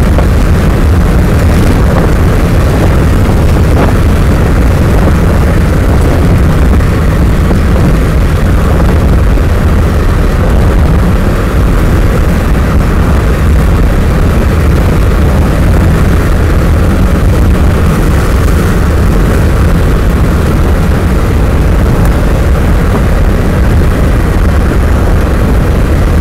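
A vehicle drives along at speed with a steady low road rumble.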